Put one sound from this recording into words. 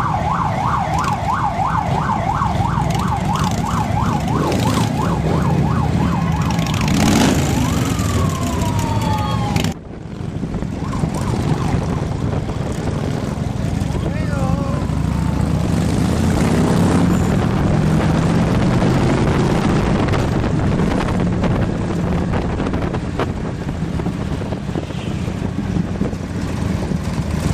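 Harley-Davidson V-twin motorcycles rumble as they ride in a group.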